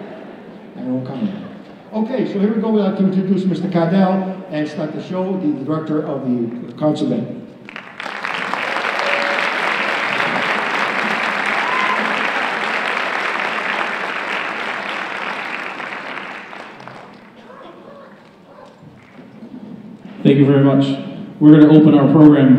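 An elderly man speaks with animation through a microphone in a large hall.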